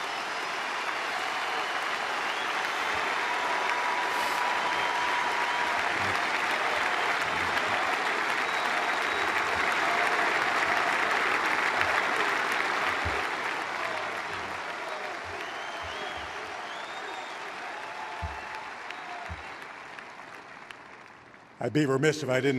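A large crowd applauds and cheers in an open stadium, slowly fading.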